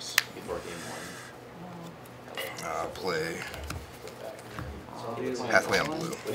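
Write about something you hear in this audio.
Playing cards rustle and tap as they are handled.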